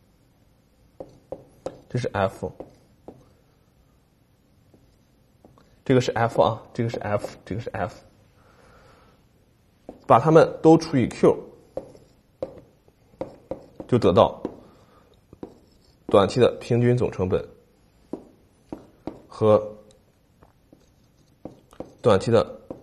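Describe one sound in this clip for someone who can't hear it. A man lectures calmly and clearly into a close microphone.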